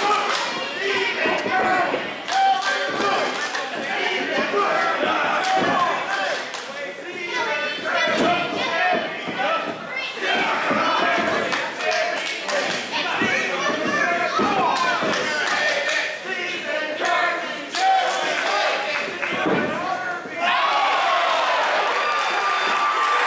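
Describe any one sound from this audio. A crowd of people shouts and cheers in a large echoing hall.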